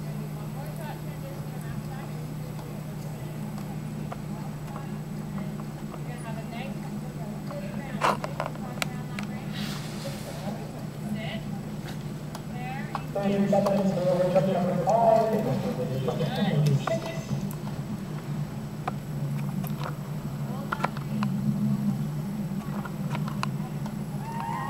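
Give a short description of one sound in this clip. Hooves thud softly on sand as a horse trots.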